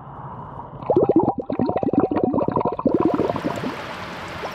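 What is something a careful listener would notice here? Water gurgles into a bottle as it fills.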